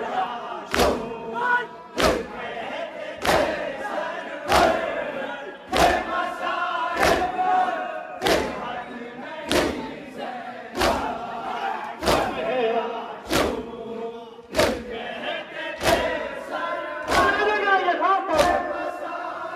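A crowd of men chant together loudly outdoors.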